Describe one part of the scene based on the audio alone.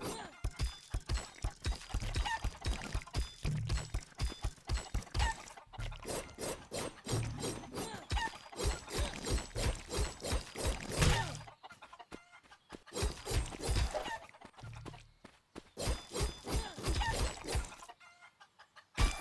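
Sword blows swish and thud repeatedly against a creature in a video game.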